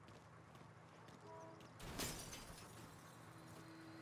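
A heavy body thuds onto a pile.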